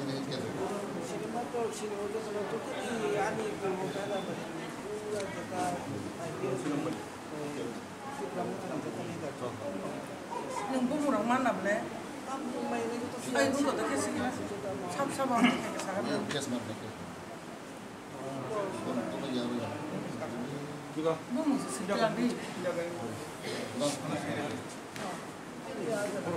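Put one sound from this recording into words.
Several adults talk at once nearby in a crowded room.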